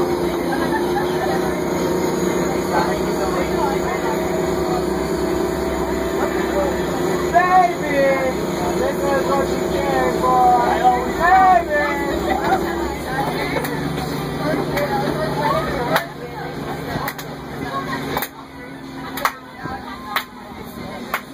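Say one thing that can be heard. A bus engine hums steadily while riding.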